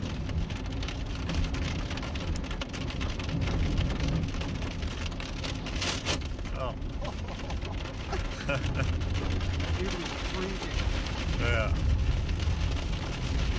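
Rain patters and taps on a car windscreen.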